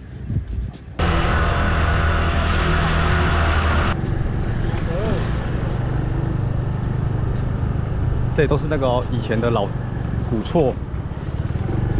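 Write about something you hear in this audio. A scooter engine hums steadily as it rides along.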